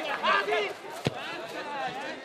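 A ball is kicked hard with a dull thud.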